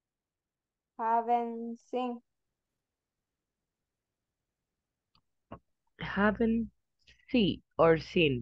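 A woman speaks over an online call, with short pauses.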